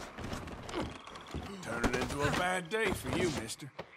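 A man grunts while struggling on a wooden floor.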